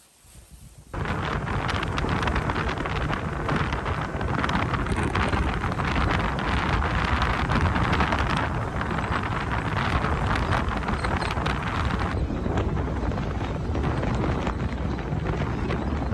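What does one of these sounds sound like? A small vehicle's engine rumbles as it drives along.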